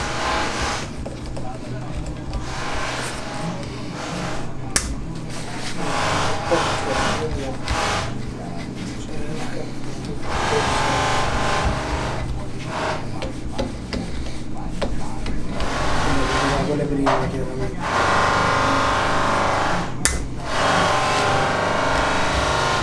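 A knife scrapes and shaves wood.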